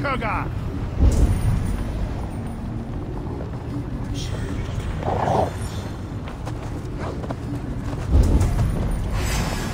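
A deep magical boom rumbles.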